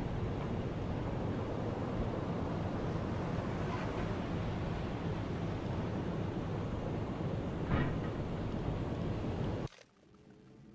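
Waves rush and splash against a boat's hull.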